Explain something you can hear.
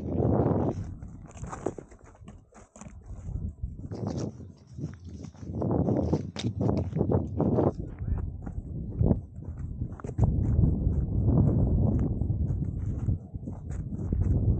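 Wind blows in strong gusts outdoors.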